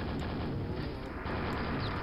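A nail gun fires rapidly in a video game.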